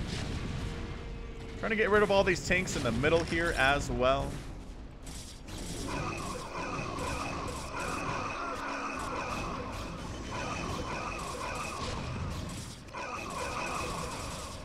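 Explosions boom in a game battle.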